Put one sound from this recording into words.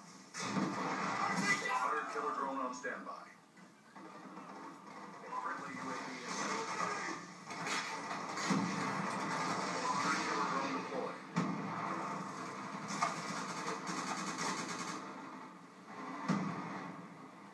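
Gunshots and explosions from a video game sound through a loudspeaker.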